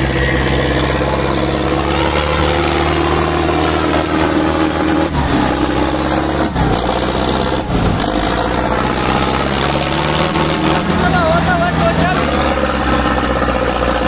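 Tractor diesel engines rumble loudly and steadily close by.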